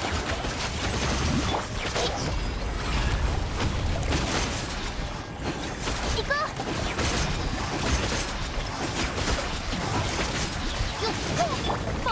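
Fiery blasts and explosions boom and crackle in quick succession.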